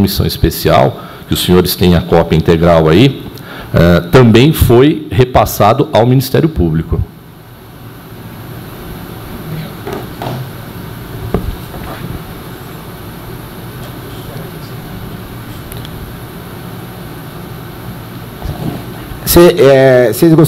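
A middle-aged man speaks calmly into a microphone in a room.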